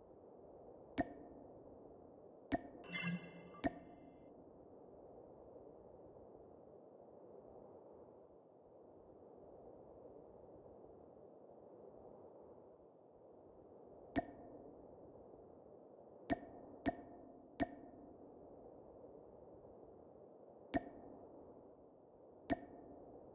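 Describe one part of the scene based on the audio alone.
Short menu clicks sound now and then.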